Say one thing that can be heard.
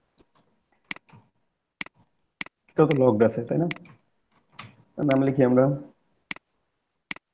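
A computer mouse clicks sharply, several times.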